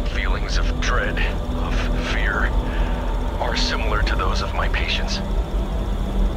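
A man speaks calmly through a small tape recorder speaker.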